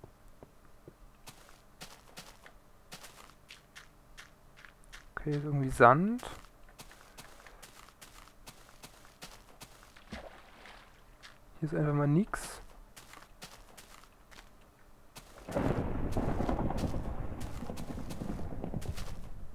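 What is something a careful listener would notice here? Footsteps patter steadily on grass.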